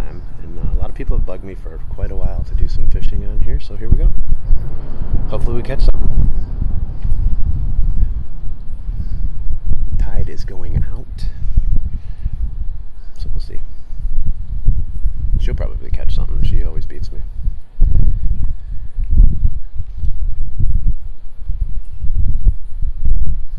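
Wind blusters outdoors, rumbling steadily throughout.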